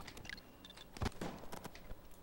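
A sniper rifle fires with a loud crack.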